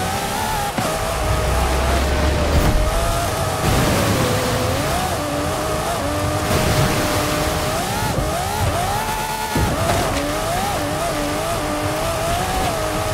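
Tyres rumble and crunch over a rough dirt track.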